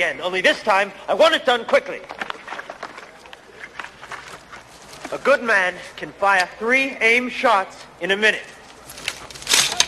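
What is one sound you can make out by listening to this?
A second man speaks calmly, close by.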